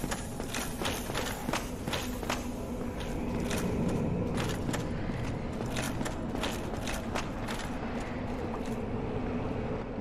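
Armored footsteps clank quickly on stone.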